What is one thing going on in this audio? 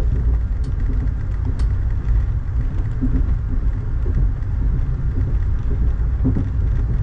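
Rain patters on a window.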